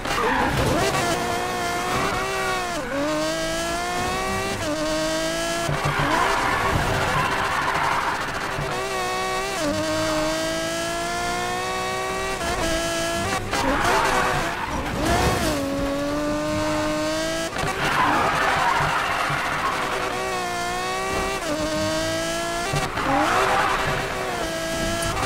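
A race car engine roars and revs, shifting pitch through the gears.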